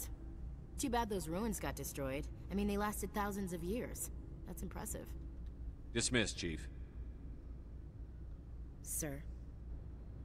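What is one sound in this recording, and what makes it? A young woman speaks calmly and thoughtfully.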